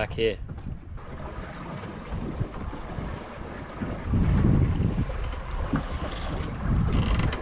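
Wind rumbles loudly outdoors at sea.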